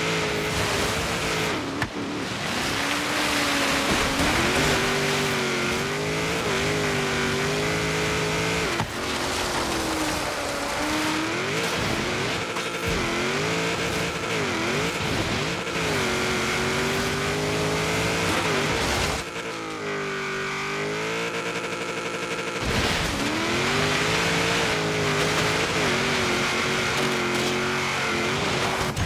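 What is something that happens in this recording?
A rally car engine revs hard, rising and falling in pitch as gears change.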